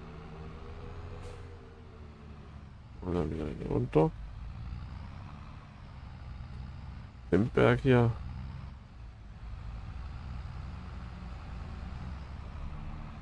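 A tractor engine hums while driving.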